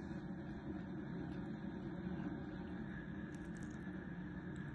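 A metal blade scrapes and clicks against a watch case.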